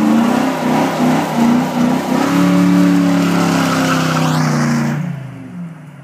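A car engine revs hard at close range.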